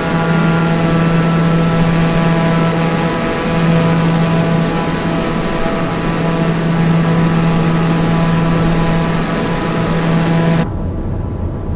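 A single-engine turboprop drones loudly, heard from outside.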